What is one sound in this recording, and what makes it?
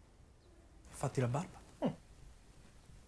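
A man answers in short phrases, a little farther off.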